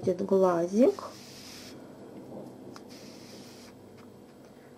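Thread softly rustles as it is pulled through knitted yarn.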